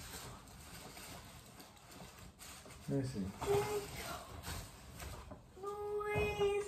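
A plastic gift bag rustles and crinkles.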